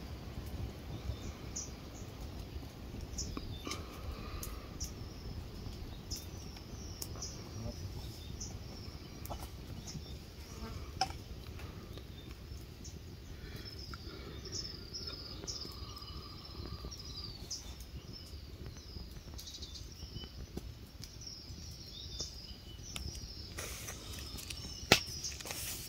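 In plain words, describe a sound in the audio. Leaves rustle and twigs snap as men climb through a tree.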